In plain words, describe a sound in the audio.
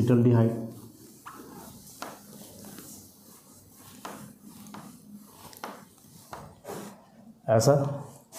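A cloth rubs and squeaks across a whiteboard.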